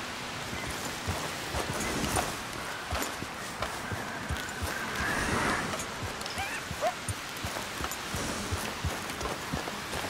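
A horse's hooves thud and crunch on the forest floor as it walks.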